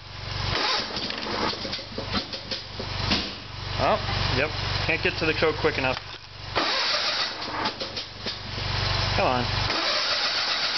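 A lawn tractor engine cranks and sputters.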